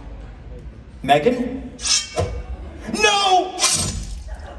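A man speaks through loudspeakers in a large echoing hall.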